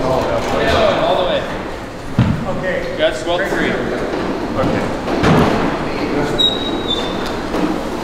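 Young men talk nearby in a large, echoing room.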